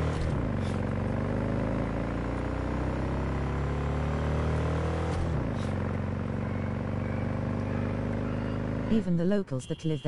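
A motorcycle engine hums and revs up and down.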